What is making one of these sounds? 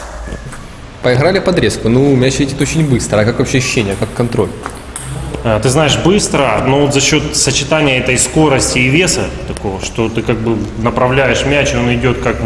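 A man speaks calmly and clearly close by, in an echoing room.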